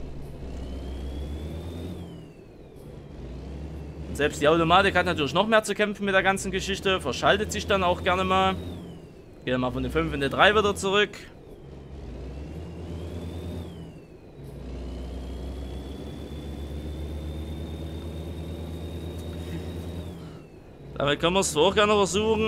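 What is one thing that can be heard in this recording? A truck engine drones steadily and rises and falls in pitch as the gears change.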